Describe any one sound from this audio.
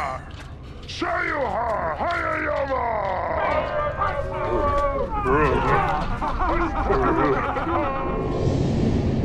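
A woman shouts and whoops excitedly.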